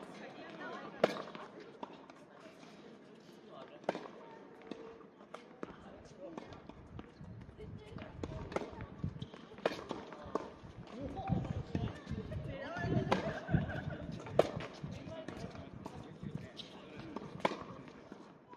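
Tennis balls are struck with rackets and pop sharply outdoors.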